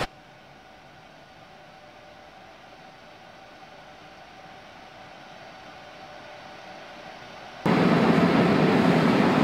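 A train rolls steadily along the tracks with a low rumble.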